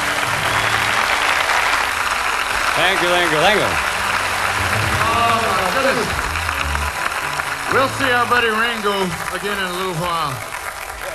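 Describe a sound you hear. A rock band plays loudly on a stage.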